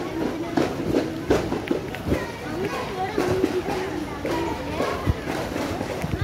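A crowd of men chants together outdoors.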